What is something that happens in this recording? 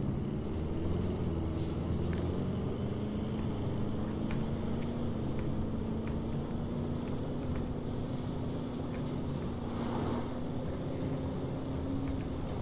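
An engine hums steadily as an off-road vehicle drives over grass.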